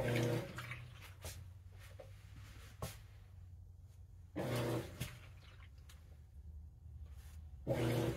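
Wet laundry swishes and sloshes in a washing machine drum.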